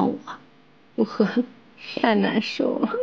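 Another young woman speaks softly.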